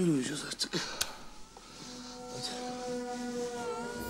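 Bed sheets rustle as someone pulls them over their head.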